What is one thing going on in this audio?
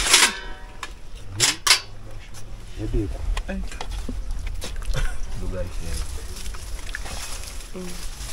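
Metal plates clink and clatter together.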